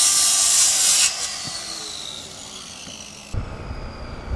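A circular saw's motor winds down after the cut.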